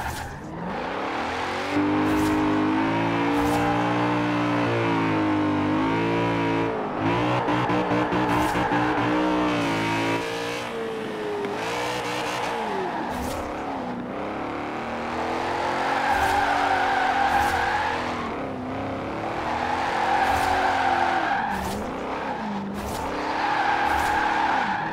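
A car engine revs hard and changes pitch as gears shift.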